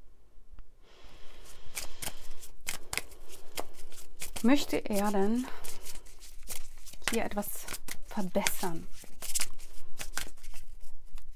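Playing cards are shuffled with quick, crisp clicks.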